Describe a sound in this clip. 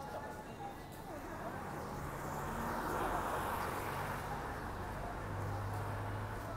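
A bus engine rumbles close by as it passes.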